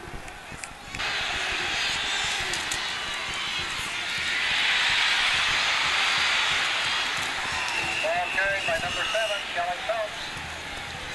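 A large crowd cheers and roars loudly in a stadium.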